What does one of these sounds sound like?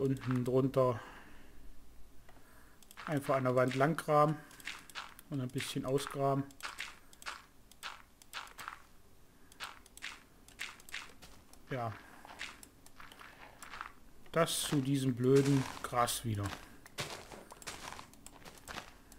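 Dirt blocks crunch in short bursts as they are dug and placed.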